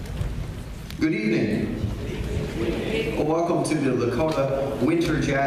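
A man speaks calmly through a microphone over loudspeakers in a large echoing hall.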